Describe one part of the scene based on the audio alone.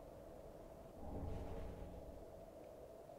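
A heavy weapon swings with a deep whoosh.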